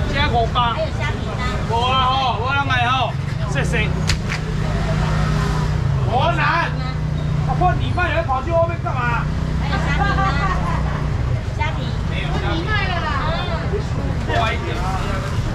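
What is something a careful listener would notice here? A young man calls out loudly to customers.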